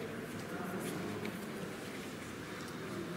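A paintbrush dabs and brushes softly on paper.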